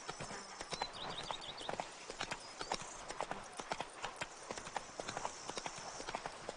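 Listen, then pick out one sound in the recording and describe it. Horse hooves clop rapidly on a dirt path.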